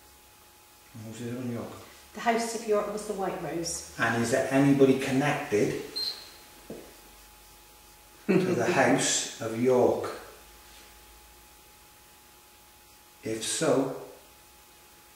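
A man speaks quietly in short bursts nearby.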